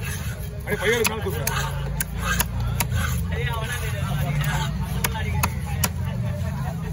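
A heavy knife chops through fish onto a wooden block with sharp knocks.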